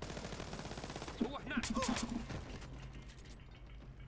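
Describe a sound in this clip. A silenced gun fires with a muffled thud.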